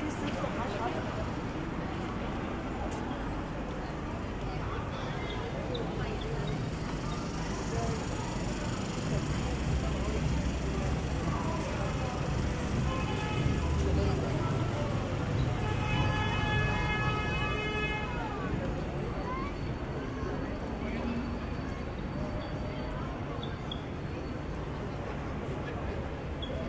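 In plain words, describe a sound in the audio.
A busy street murmurs with distant traffic and crowd noise outdoors.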